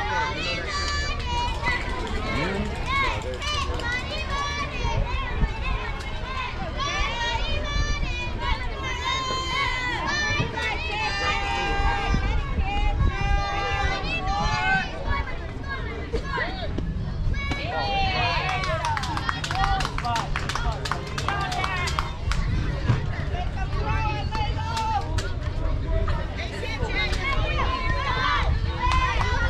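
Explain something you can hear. Young women and girls cheer and call out across an open field.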